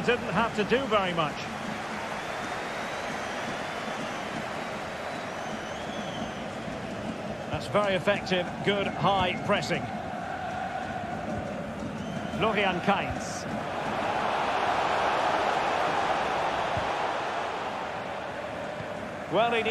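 A large stadium crowd roars steadily, swelling louder for a while.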